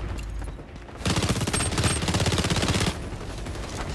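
A burst of rapid automatic gunfire rattles loudly.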